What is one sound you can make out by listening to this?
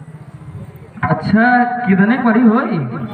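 A man sings loudly through a loudspeaker.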